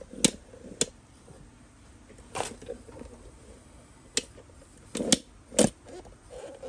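A cardboard box thumps and scrapes as it is handled.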